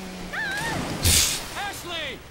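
Water sprays up from a personal watercraft's hull.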